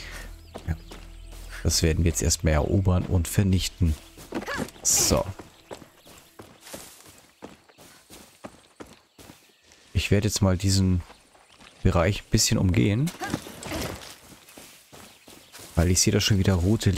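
Footsteps rustle through grass and dirt.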